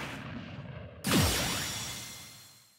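A bright game jingle rings out suddenly and fades away.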